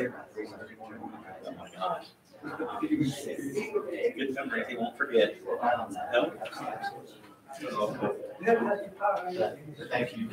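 A man and a woman talk casually nearby in a room with a slight echo.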